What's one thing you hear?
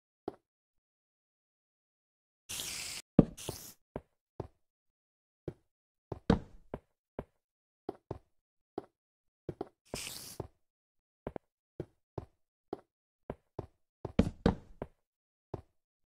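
Footsteps crunch steadily on stone.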